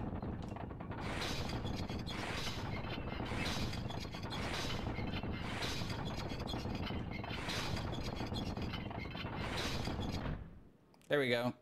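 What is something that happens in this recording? Magic spells whoosh and crackle in quick bursts.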